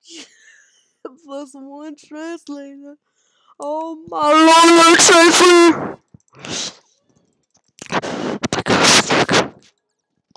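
A boy talks excitedly and close to a microphone.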